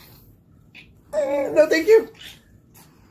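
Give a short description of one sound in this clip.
A young child laughs close by.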